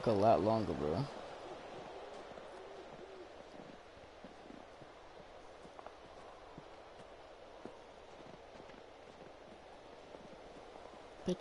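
Footsteps crunch softly through snow.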